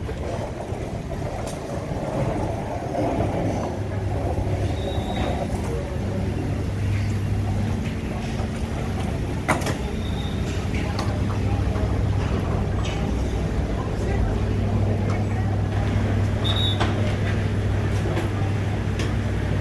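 A ship's engine drones low and steady.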